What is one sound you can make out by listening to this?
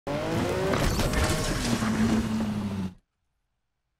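A car crashes through wooden crates with loud splintering.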